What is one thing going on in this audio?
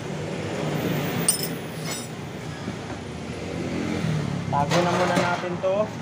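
Metal tools clink and rattle on the floor.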